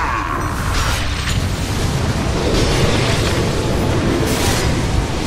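Magic spells whoosh and crackle in a fast-paced fight.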